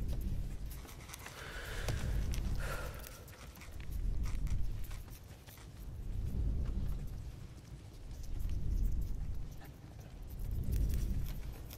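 Quill pens scratch on paper.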